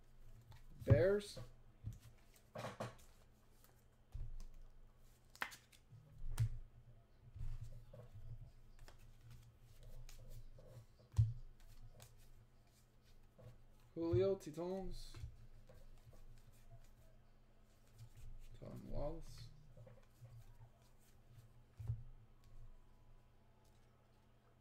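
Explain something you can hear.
Trading cards rustle and slap softly as they are shuffled by hand.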